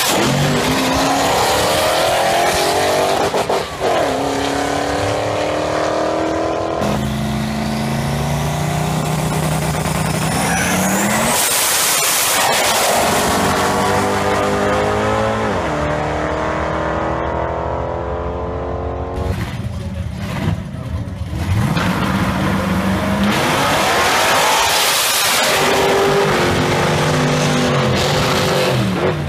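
Race car engines roar loudly as cars launch and speed away.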